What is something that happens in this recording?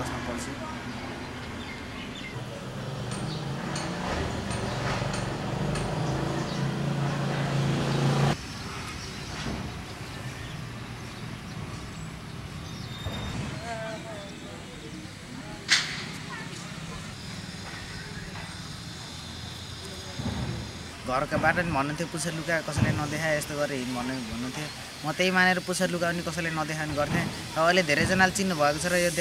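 A young man speaks calmly, close to the microphone.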